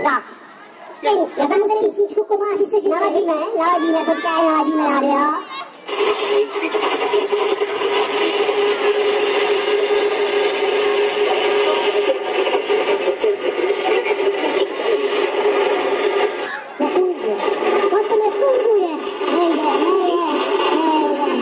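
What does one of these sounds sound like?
A man talks with animation through a loudspeaker.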